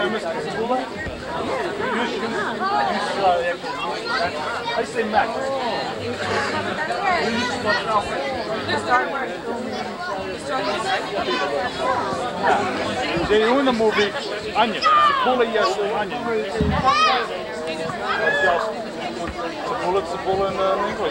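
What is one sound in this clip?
Several men and women chat and talk over one another outdoors.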